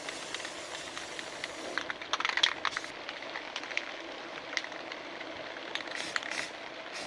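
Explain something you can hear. An aerosol spray can hisses in short bursts.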